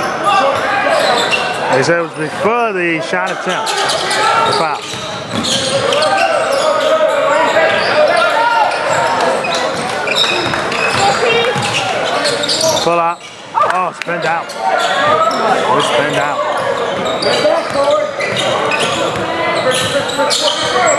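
Spectators and players shout and call out in a large echoing gym.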